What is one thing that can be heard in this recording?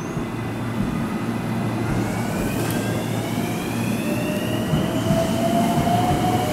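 A train pulls away with a rising electric whine.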